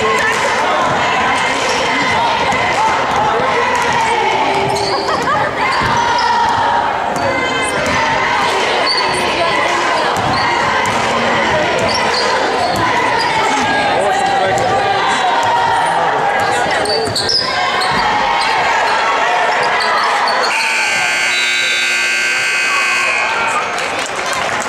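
Sneakers squeak sharply on a wooden gym floor.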